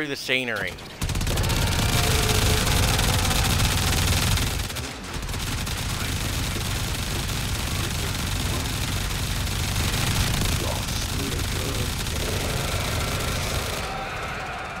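A heavy weapon fires in a rapid, roaring stream with crackling blasts.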